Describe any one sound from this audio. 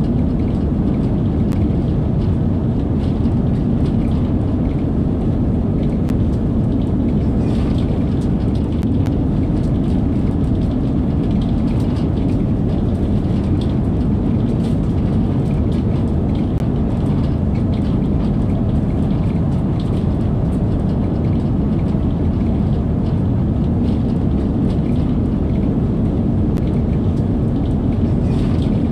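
A train rumbles steadily at speed through a tunnel.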